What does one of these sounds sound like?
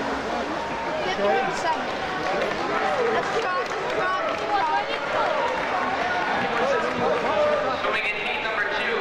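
A crowd of men and women chatters loudly in a large echoing hall.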